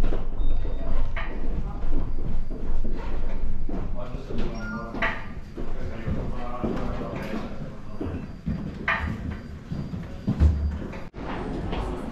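A crowd of people murmurs far below outdoors.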